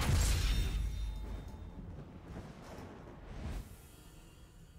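A deep, booming fanfare swells and fades away.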